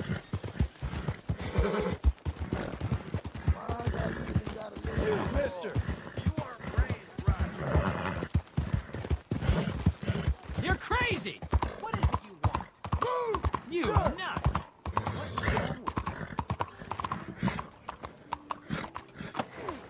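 A horse's hooves clop steadily.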